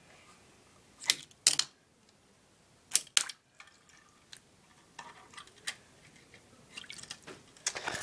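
A hand splashes and sloshes water in a sink.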